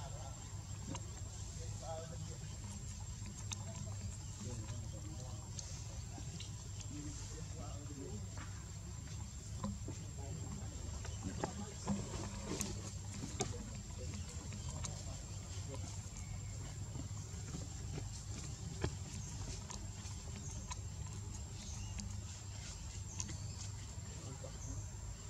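A baby monkey suckles with soft smacking sounds.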